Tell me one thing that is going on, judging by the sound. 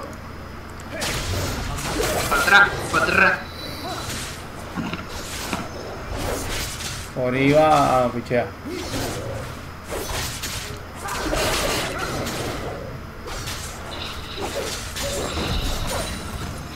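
Blows and spell blasts crash repeatedly in a fight.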